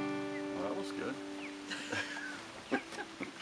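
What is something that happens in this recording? An acoustic guitar chord rings out and fades.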